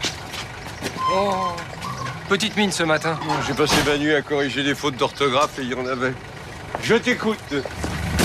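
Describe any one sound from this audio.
A younger man answers close by.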